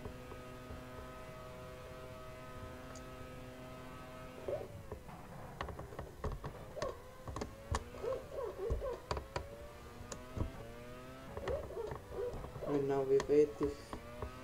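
A racing car engine whines at high revs, dropping in pitch as it shifts down for corners and rising again.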